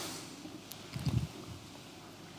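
A man sips from a glass of water.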